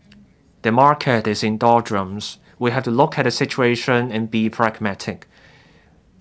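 A middle-aged man speaks calmly and formally into a microphone.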